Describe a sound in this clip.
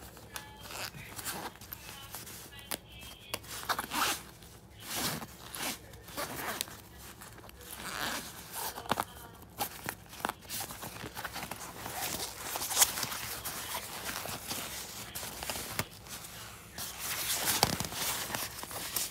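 Hands rustle and rub against fabric.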